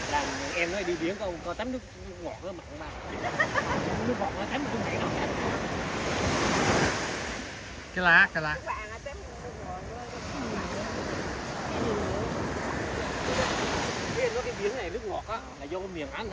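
Several adults, men and women, talk casually close by.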